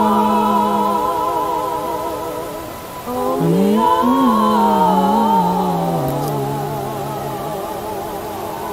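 A young man chants a long, wavering note up close.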